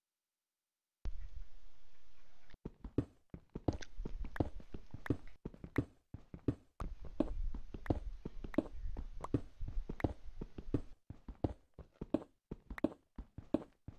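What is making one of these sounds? A pickaxe chips at stone in quick, repeated knocks.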